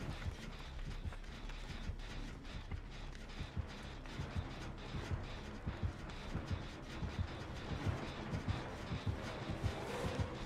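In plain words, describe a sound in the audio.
Footsteps thud quickly over soft ground.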